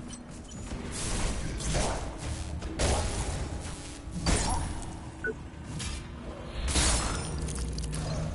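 Heavy metal blows clash and crunch in a fight.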